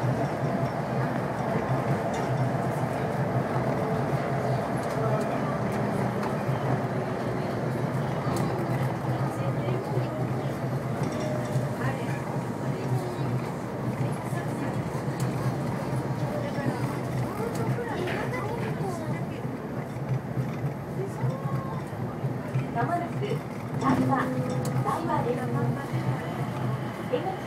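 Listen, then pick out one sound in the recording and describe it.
A train hums and rumbles steadily along an elevated track.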